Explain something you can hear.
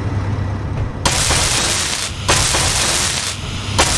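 A welding tool hisses and crackles with sparks.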